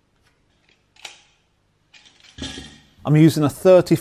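A tape measure's blade rattles as it slides out.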